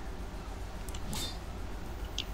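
A blade swishes sharply through the air.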